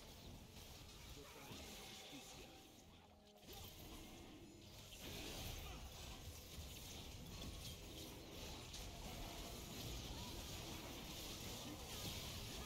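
Magic spells, blasts and clashing weapons from a video game ring out in quick succession.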